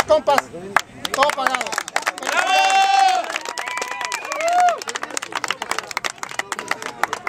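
A group of people clap their hands rapidly.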